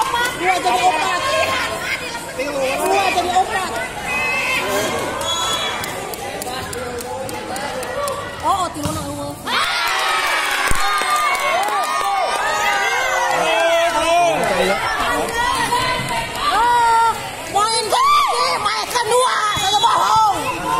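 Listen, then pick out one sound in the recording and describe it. A crowd of children chatter and shout outdoors.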